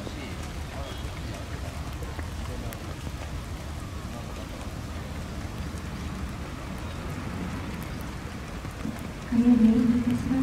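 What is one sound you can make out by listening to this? A horse's hooves thud softly on wet sand.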